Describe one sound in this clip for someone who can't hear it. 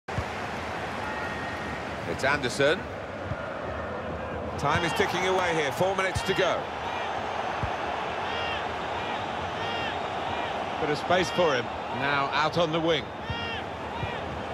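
A stadium crowd murmurs and cheers steadily in the background.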